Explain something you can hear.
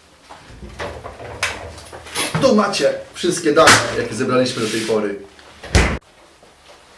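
A fridge door opens and shuts with a thud.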